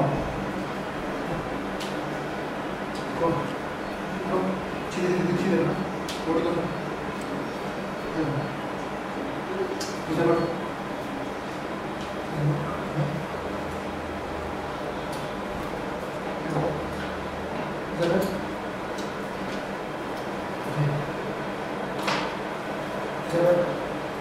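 Bare feet shuffle and thud on a hard floor.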